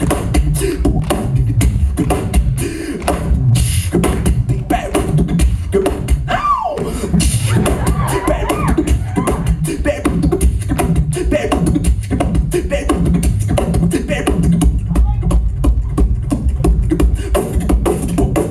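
A man beatboxes fast, steady rhythms into a microphone, heard through loudspeakers in a large hall.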